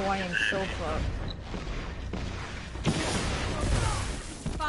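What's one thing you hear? A loud video game explosion booms.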